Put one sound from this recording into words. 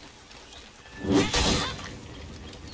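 A flame whooshes and crackles.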